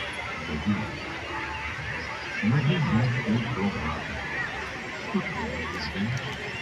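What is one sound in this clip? A large outdoor crowd chatters and murmurs all around.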